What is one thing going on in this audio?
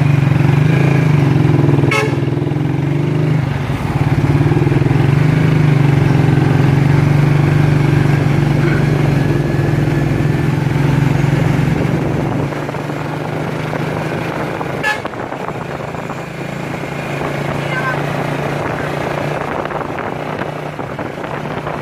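Traffic passes on the road.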